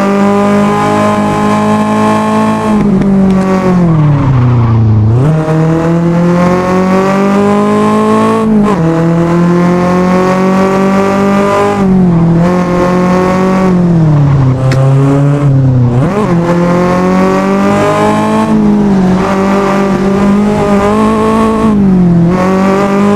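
A car engine roars loudly, revving up through the gears and dropping in pitch at each shift.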